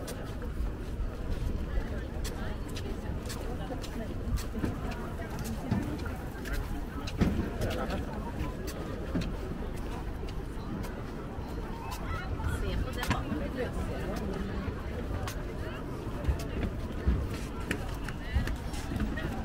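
Footsteps walk along a hollow-sounding floating walkway.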